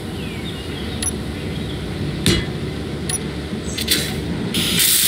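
Short clicks sound as parts snap into place.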